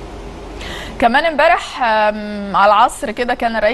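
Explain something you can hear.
A woman speaks clearly and with animation into a microphone.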